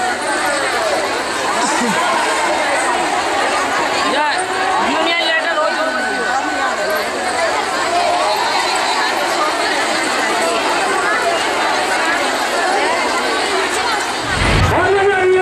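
A large crowd of women chatters loudly outdoors.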